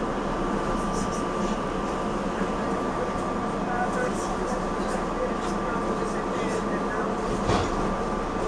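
Train wheels click and squeal on the rails.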